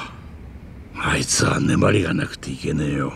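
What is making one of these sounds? A younger man speaks calmly.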